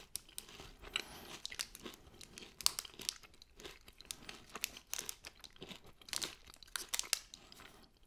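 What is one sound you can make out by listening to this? A plastic candy bar wrapper crinkles and rustles in hands.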